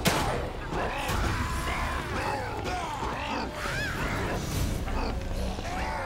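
A monster snarls and groans up close.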